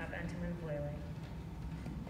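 A woman speaks briefly into a microphone in a hall.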